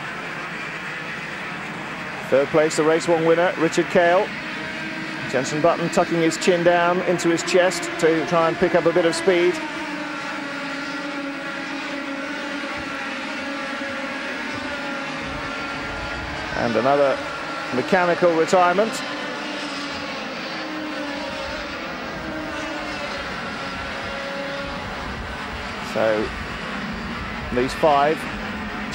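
Kart engines buzz and whine as karts race past.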